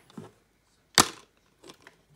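A plastic disc case snaps open with a click.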